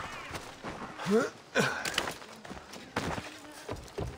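A heavy thud of a landing after a jump.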